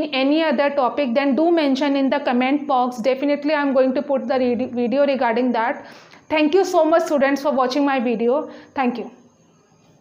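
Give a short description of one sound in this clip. A young woman speaks clearly and steadily into a nearby microphone, explaining.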